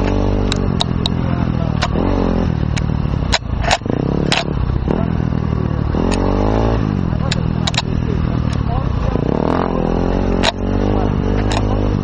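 A motorbike engine revs and roars up close, rising and falling in pitch.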